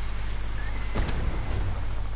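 A heavy thud sounds as something lands on the ground.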